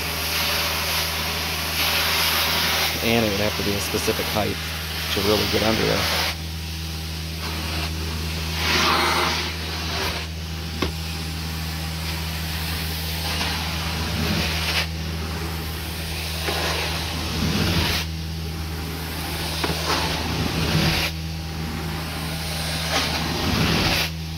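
A carpet cleaning machine hums steadily with a low drone.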